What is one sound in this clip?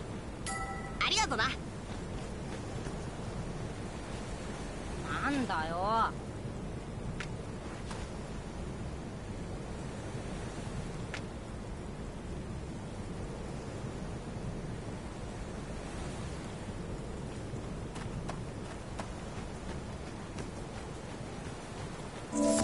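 Waves wash softly onto a beach.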